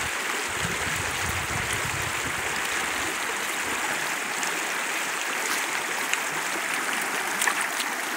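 Leaves rustle as a dog pushes through bushes.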